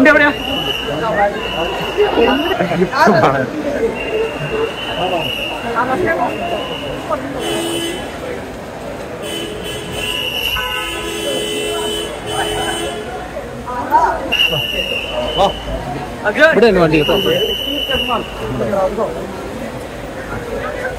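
A crowd of people chatters loudly close by.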